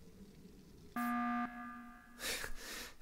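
An alarm blares loudly.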